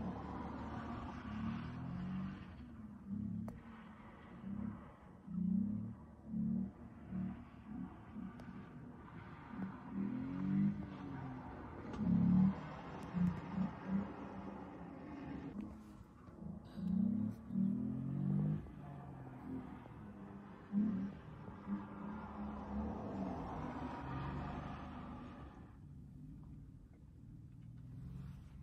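A car engine revs hard and drops again at a distance, over and over.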